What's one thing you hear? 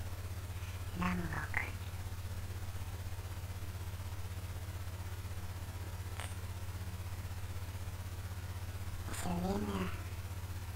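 A young man speaks briefly and quietly into a close microphone.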